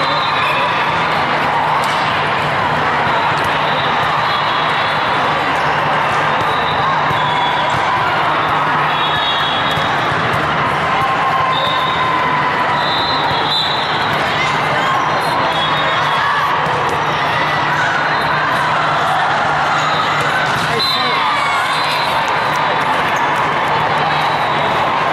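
Many voices murmur and chatter in a large echoing hall.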